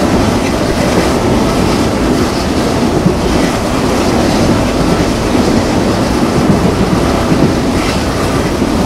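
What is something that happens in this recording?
Wind rushes past an open train window.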